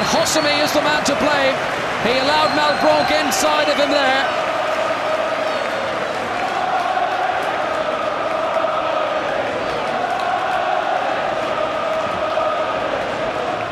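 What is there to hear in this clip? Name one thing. A large stadium crowd murmurs and roars steadily in an open space.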